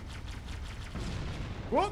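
An explosion roars loudly.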